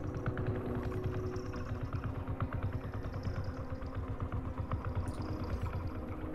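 Large propellers whir with a steady, fast pulsing throb.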